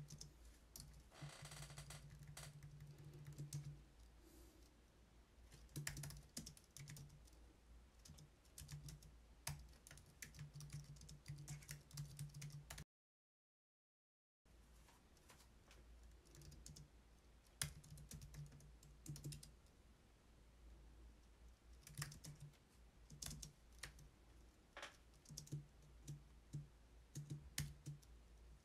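Keys click rapidly on a keyboard.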